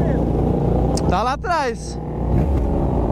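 A motorcycle roars past close by, its pitch dropping.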